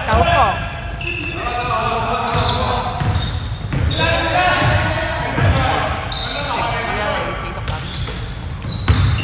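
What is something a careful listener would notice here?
Young men call out to each other across the court.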